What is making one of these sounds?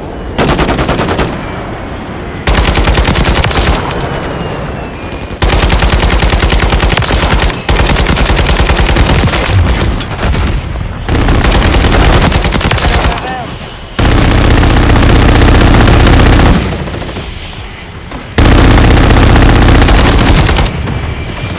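Rapid bursts of gunfire crack out.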